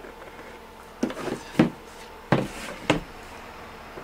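A hard board knocks and scrapes against a table as it is turned.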